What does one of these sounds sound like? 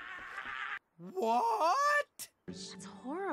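A man yells in a wavering, cartoonish voice.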